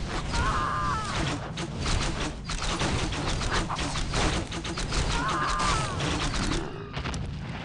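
Swords and weapons clash and clang in a fierce fight.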